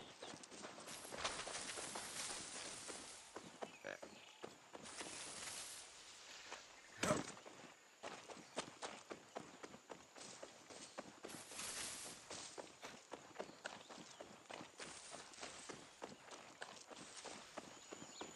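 Leaves rustle and swish as someone pushes through dense bushes.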